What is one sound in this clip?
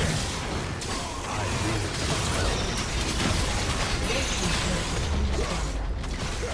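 Video game battle effects crackle, blast and clash without pause.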